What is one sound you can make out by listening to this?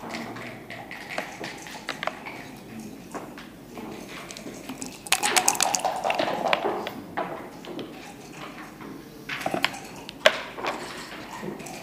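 Plastic game pieces click as they are moved on a wooden board.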